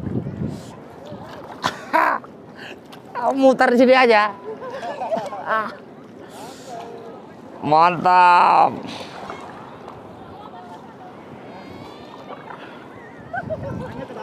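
Paddles splash in the sea.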